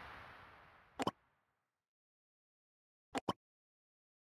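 A short click sounds as a button is pressed.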